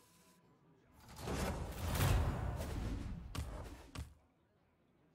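A loud swooshing game effect sweeps in and clangs.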